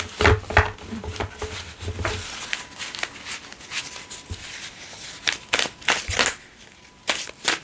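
Playing cards shuffle and riffle close by.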